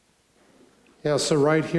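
A man speaks through a microphone in a large room.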